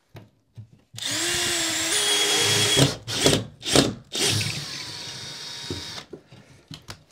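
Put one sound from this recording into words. A power tool whirs loudly in short bursts.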